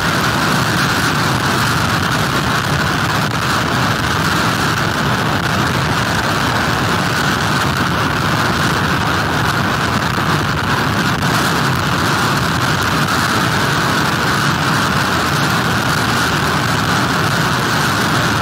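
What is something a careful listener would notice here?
Heavy surf crashes and roars steadily.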